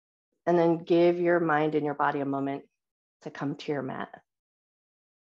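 A woman speaks calmly and clearly over an online call.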